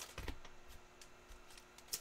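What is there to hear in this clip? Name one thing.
Cards tap softly as they are set down on a stack.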